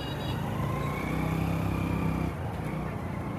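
A car engine hums as the car drives slowly past.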